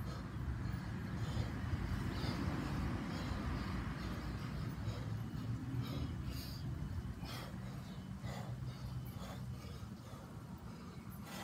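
A man exhales sharply with each swing.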